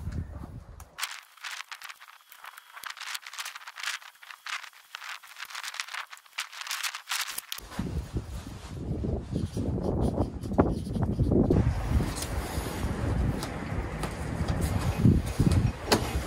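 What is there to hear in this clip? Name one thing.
Plastic seedling trays rustle and clatter as they are handled.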